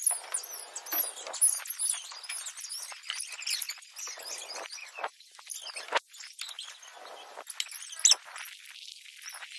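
A cloth rubs and squeaks over a car's body.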